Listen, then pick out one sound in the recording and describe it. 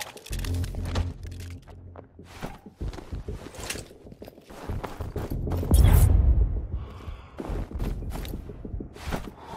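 Hands grab onto a rock ledge.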